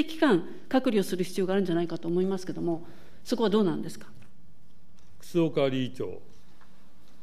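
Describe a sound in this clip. A woman speaks into a microphone in a formal, measured way.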